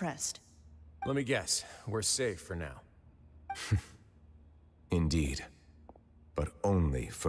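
A man speaks in a calm, low voice.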